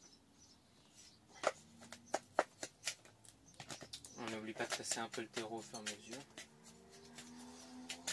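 A wooden stick scrapes and pokes into dry soil in a pot.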